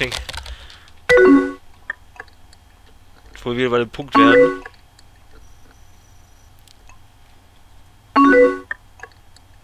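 A short electronic chime sounds as a chat message arrives.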